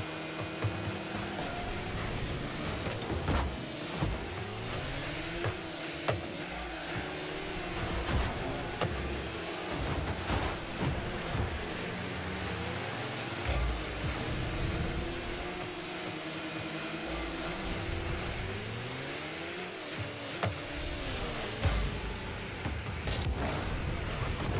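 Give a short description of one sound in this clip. Car engines hum and rev throughout.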